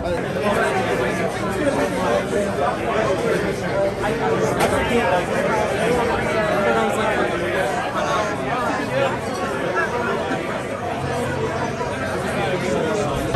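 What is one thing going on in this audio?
A crowd of men and women chatters loudly all around, in a busy, echoing room.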